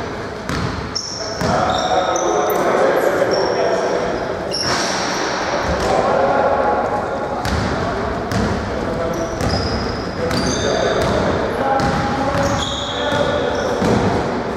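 A basketball bounces off the floor with thuds.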